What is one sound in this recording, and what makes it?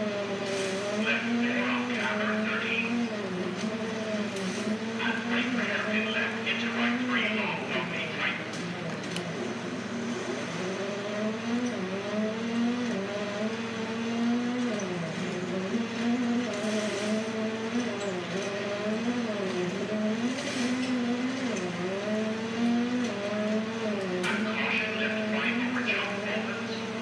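Gravel sprays and rattles under a car's tyres.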